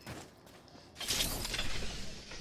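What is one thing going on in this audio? A metal supply crate slides open with a mechanical whoosh.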